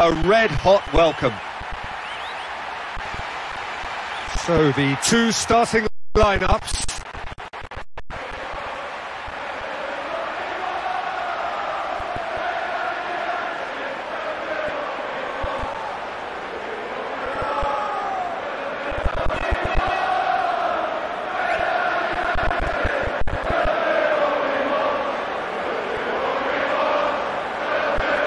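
A large crowd sings and chants in an echoing stadium.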